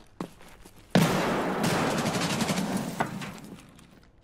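Gunfire bursts loudly in a video game.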